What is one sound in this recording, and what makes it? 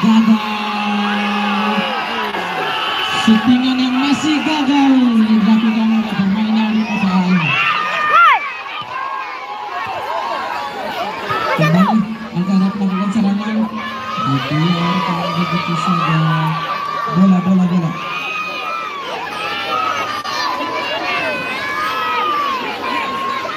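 A large crowd of spectators shouts and cheers outdoors.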